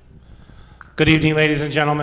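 A man speaks through a loudspeaker in a large echoing hall.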